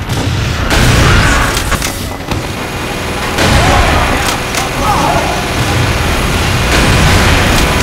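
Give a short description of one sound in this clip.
A sniper rifle fires sharp single shots.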